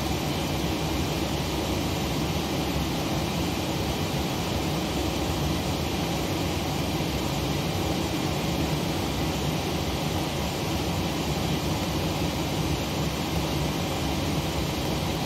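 Aircraft engines idle with a steady low rumble.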